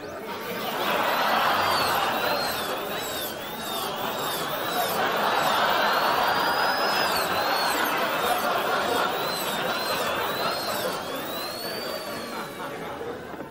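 A dental drill whines in short bursts, rising and falling in pitch.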